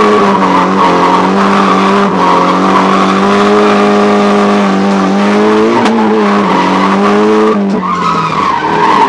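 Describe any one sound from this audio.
A car engine revs loudly and steadily, heard from inside the cabin.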